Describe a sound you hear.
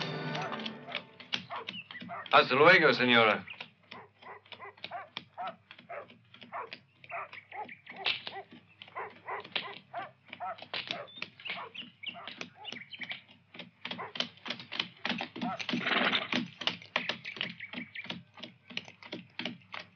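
A horse's hooves clop on hard ground.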